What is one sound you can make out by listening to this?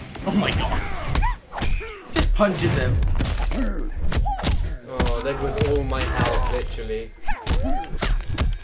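Heavy punches land with loud thuds.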